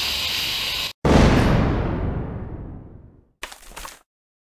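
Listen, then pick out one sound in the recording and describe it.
A bomb goes off with a loud boom that slowly fades.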